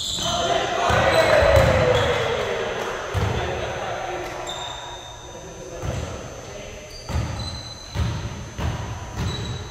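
A volleyball thumps off hands.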